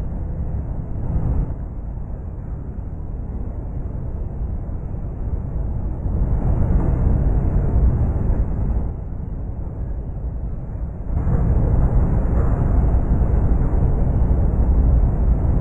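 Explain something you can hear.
A bus engine hums and rumbles steadily.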